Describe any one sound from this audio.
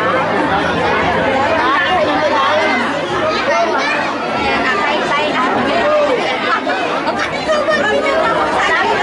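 A crowd of women and men chatter close by.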